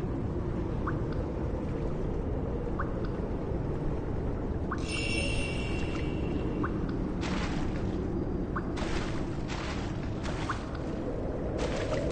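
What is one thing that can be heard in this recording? Footsteps tread slowly and evenly on the ground.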